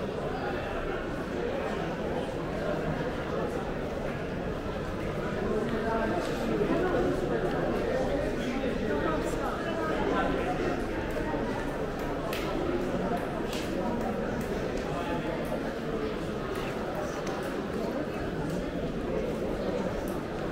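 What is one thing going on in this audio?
A crowd of people chatters in an echoing covered hall.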